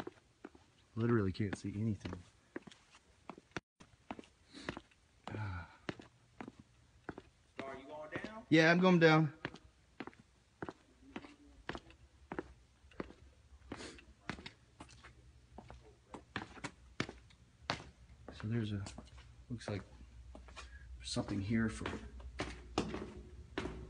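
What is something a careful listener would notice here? Footsteps tap steadily down hard stairs.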